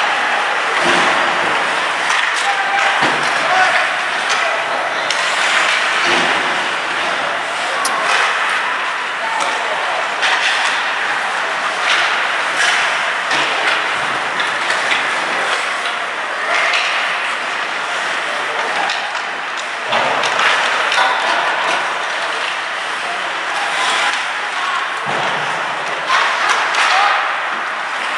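Skate blades scrape and hiss across the ice close by.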